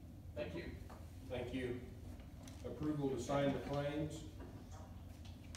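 An elderly man speaks calmly in a room with a slight echo.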